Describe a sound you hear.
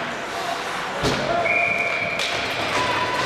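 A hockey puck is struck by sticks with sharp cracks.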